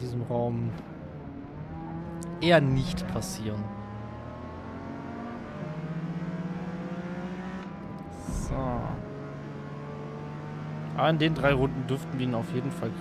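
A car engine hums steadily and revs up and down as the car races.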